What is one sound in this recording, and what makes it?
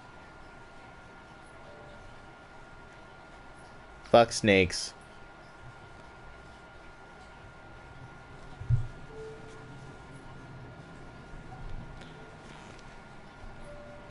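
A paper page rustles as it turns.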